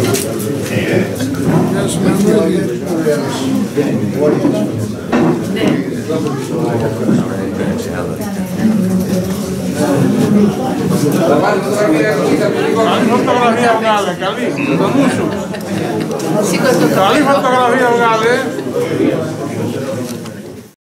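A crowd of men and women chatter in a room.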